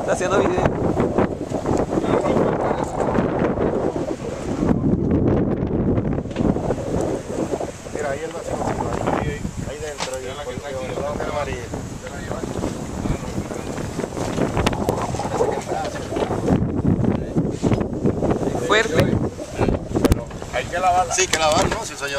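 Waves splash against a moving boat's hull.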